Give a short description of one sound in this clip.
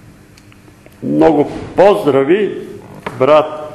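An elderly man reads aloud slowly, with a slight echo.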